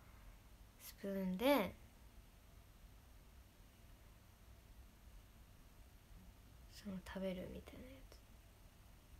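A young woman speaks softly and casually, close to a microphone.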